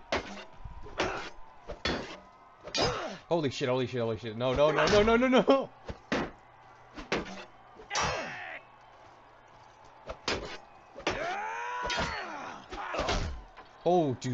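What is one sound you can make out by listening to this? Swords clash and strike wooden shields with sharp knocks.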